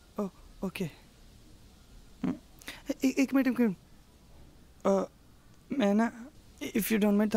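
A young woman speaks up close.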